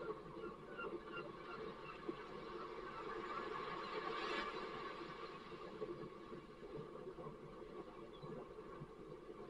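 A man splashes through shallow water with his feet.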